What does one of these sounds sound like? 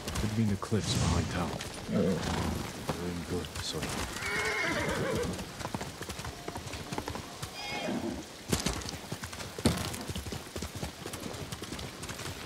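A horse's hooves thud steadily on the ground.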